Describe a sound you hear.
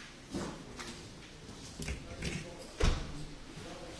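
A microphone knocks and clunks as it is handled on a table.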